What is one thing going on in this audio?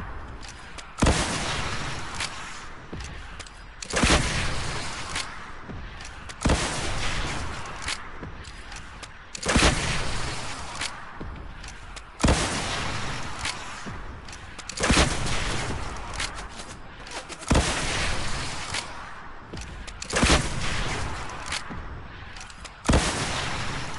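Rocket launcher shots boom again and again at a steady pace.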